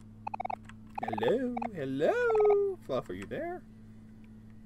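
A young man speaks playfully into a close microphone, drawing out his words in a sing-song voice.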